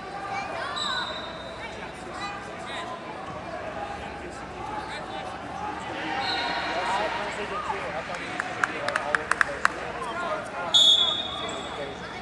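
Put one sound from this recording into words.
Whistles blow sharply across the hall.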